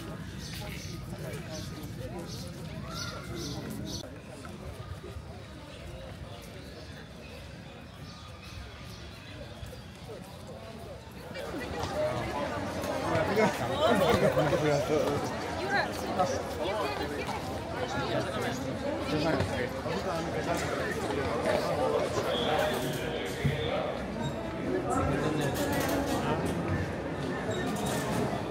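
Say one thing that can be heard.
A crowd of men and women chatters nearby outdoors, growing louder partway through.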